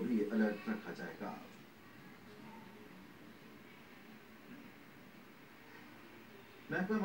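A man speaks calmly through a television loudspeaker.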